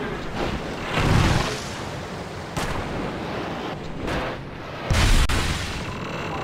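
A snowboard lands hard with a thud.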